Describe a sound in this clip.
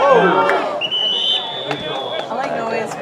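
A referee's whistle blows a short, shrill blast.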